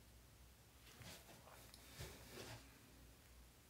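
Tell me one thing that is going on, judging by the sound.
Clothing rustles as a woman shifts in a chair.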